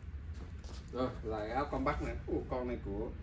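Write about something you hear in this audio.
A middle-aged man speaks close by.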